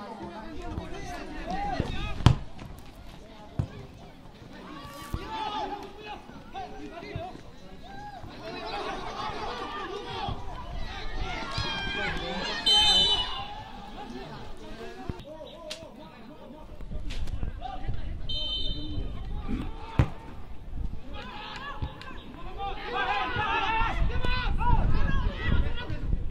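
Men shout and call out across an open outdoor field.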